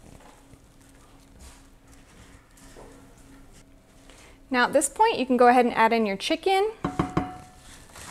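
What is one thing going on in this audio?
A spoon scrapes and stirs in a pan.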